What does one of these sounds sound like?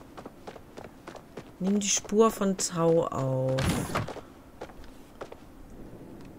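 Footsteps patter quickly on a stone path.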